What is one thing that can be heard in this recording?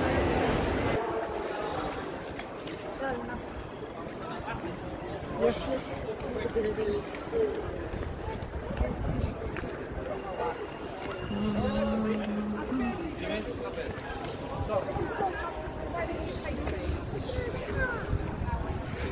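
People talk nearby outdoors.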